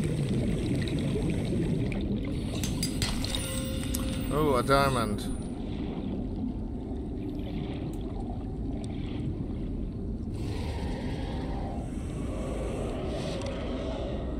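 Water rumbles in a low, steady drone.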